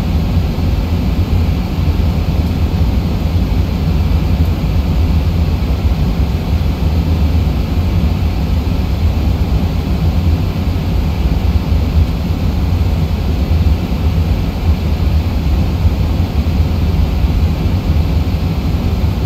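A jet engine drones steadily with a deep rumble.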